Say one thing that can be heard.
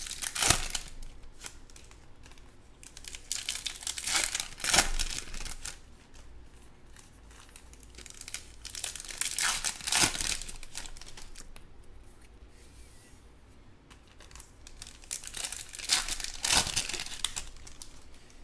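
Foil card wrappers crinkle and tear as they are opened.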